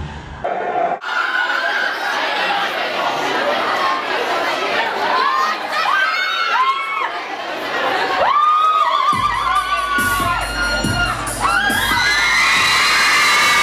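Loud live music plays in a large hall.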